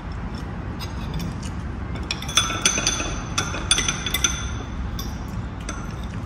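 A spoon and fork clink against a plate.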